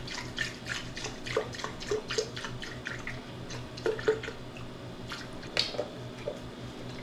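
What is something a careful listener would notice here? Dry cereal rattles as it is poured into a plastic jug.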